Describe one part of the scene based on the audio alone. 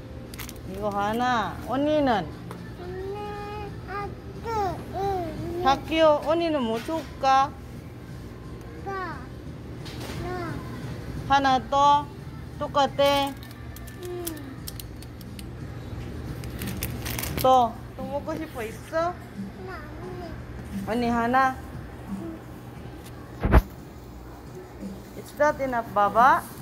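A young girl talks in a high voice close by.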